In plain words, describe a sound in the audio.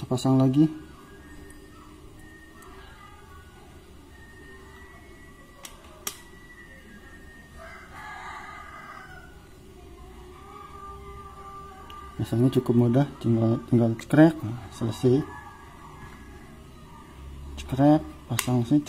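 Small plastic parts click together in someone's hands.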